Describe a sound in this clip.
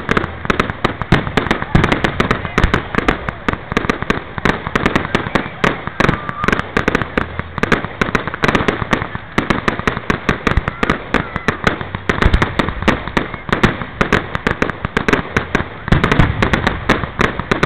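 Fireworks crackle and bang rapidly and continuously outdoors.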